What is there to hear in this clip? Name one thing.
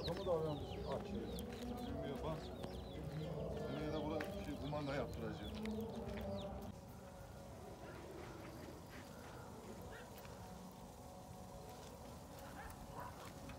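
A wood fire crackles and snaps.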